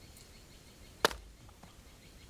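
An axe chops into wood outdoors.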